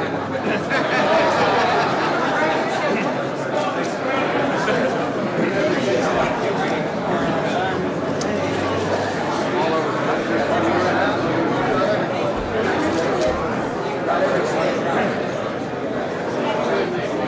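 A crowd of people talks and laughs in a busy room.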